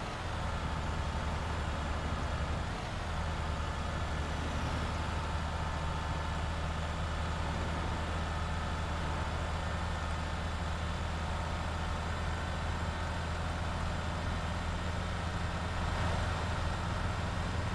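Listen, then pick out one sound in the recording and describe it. Tyres roll on asphalt with a steady rushing noise.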